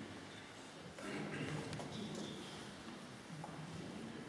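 A man speaks briefly in a large echoing hall.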